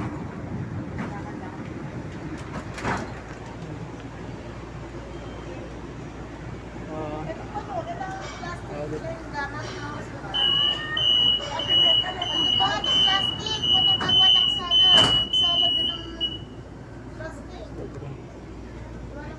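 A light rail train rumbles along its track.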